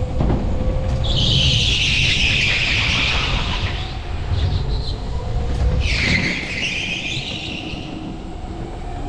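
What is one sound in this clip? Kart tyres squeal on a smooth floor through the turns.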